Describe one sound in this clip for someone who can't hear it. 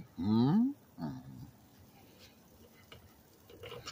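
Metal tongs click.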